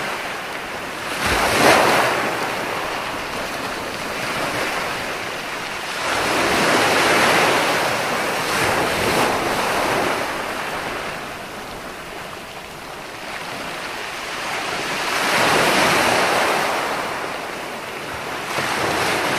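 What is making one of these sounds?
Foamy water hisses as it washes up the sand.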